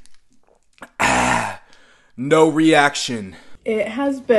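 A young man shouts in pain.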